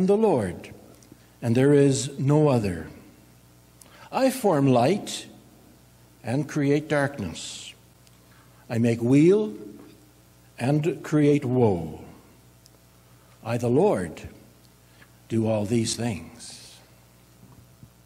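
A man speaks calmly into a microphone, reading out.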